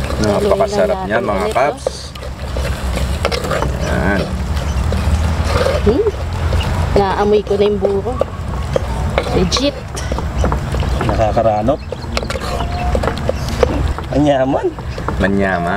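A wooden spoon stirs and scrapes thick food in a pot.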